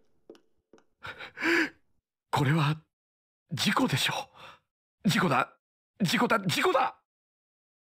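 A young man speaks anxiously to himself, close by.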